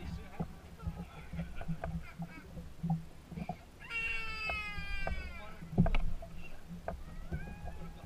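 Water laps gently against a boat's hull.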